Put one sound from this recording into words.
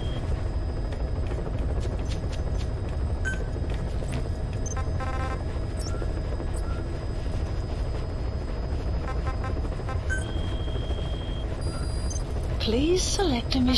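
A steady low engine rumble drones throughout.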